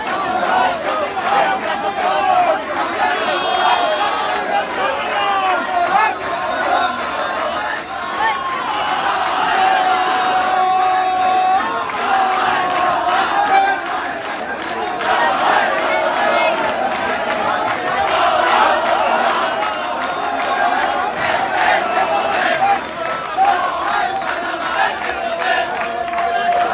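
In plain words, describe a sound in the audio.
A large crowd of men shouts and chatters loudly all around, outdoors.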